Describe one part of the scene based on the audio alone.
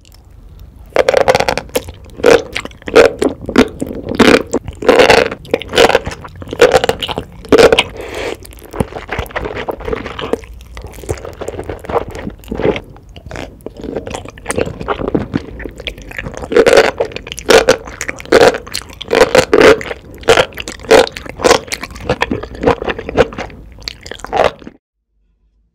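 A woman chews wet, squishy food close up.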